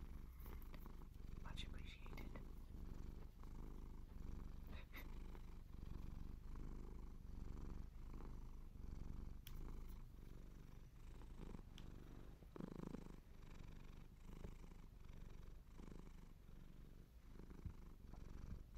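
Clothing rustles and rubs close against the microphone.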